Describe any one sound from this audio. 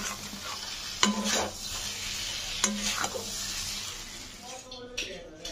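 A metal spatula scrapes and clanks against a pan.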